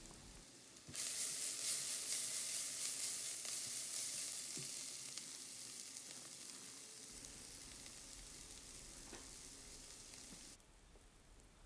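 Sauce sizzles and hisses in a hot pan.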